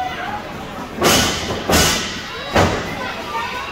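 A wrestler slams hard onto the ring mat with loud booming thuds.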